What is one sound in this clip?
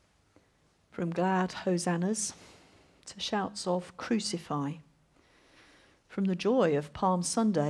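A woman speaks calmly into a microphone, reading out.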